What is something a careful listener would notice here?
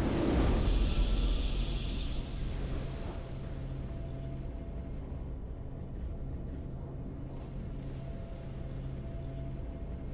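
Triumphant game music plays softly.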